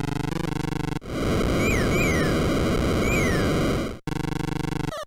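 Tyres screech in short chirps on a curve.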